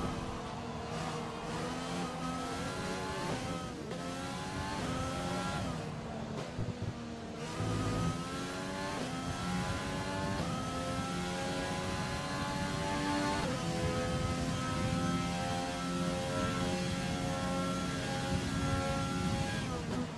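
A racing car engine revs high and whines, rising in pitch through the gears.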